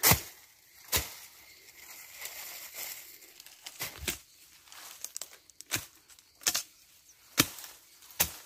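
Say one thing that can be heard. A blade chops into brush and earth with sharp, repeated thuds.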